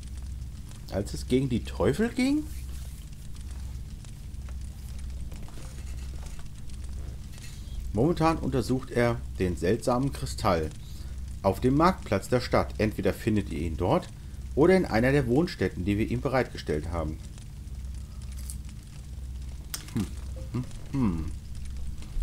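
A middle-aged man talks calmly and close to a microphone, with pauses.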